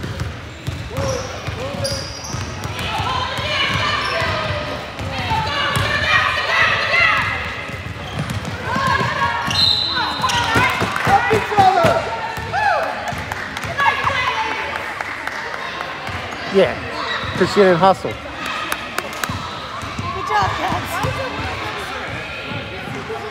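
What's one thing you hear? Young girls shout and call out to each other across a large echoing gym.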